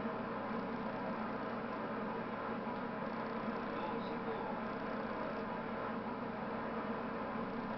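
An electric commuter train runs at speed.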